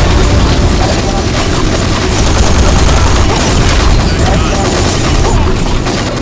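A rapid-fire gun shoots in quick bursts.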